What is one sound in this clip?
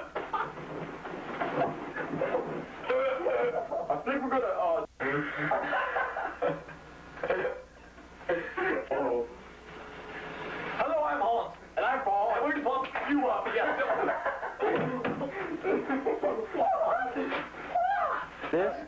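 Young men talk and laugh with animation, close by.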